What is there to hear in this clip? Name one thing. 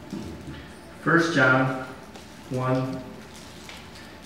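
A man reads out through a microphone.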